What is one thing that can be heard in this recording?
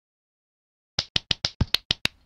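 Quick pattering clicks play as toppings drop.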